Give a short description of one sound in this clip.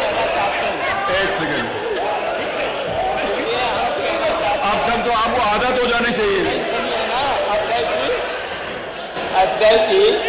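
A middle-aged man speaks firmly through a microphone.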